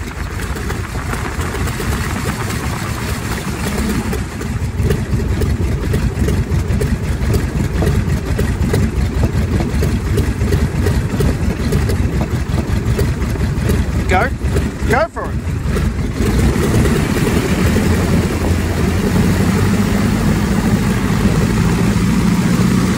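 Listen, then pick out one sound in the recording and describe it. A biplane's engine rumbles loudly close by.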